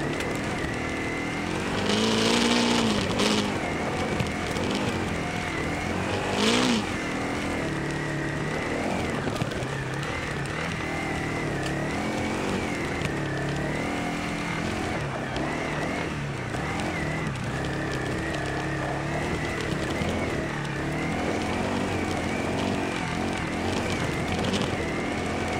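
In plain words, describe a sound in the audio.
A quad bike engine idles and revs up and down close by.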